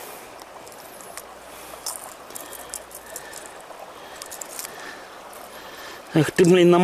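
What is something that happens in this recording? Shallow water laps gently at the edge of a pebbly bank.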